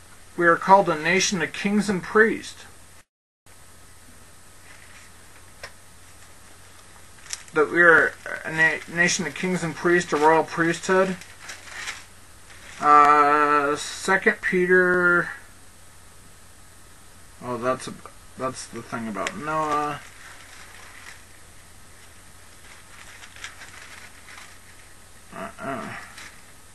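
A man speaks calmly into a headset microphone, in short bursts with pauses.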